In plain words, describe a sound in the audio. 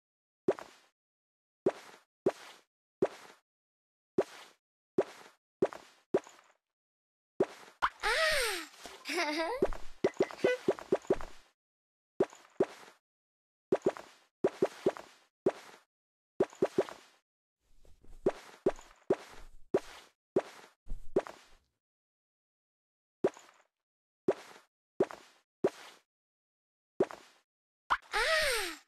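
Short bright pops sound again and again as a cartoon cat's outfit changes.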